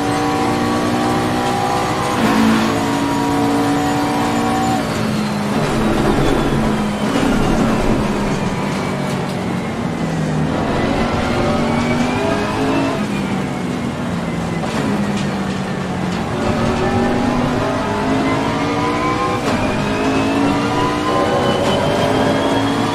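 A race car engine roars loudly, rising and falling through gear shifts.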